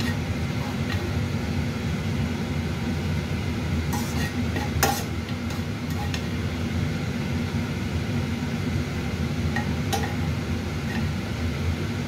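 Metal tongs clack and scrape against a pan.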